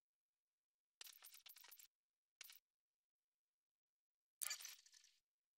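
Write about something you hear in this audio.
Menu selection blips sound several times.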